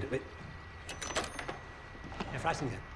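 A telephone receiver clunks down onto its cradle.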